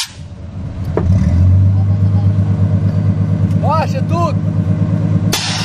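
A car engine idles with a deep, throbbing rumble.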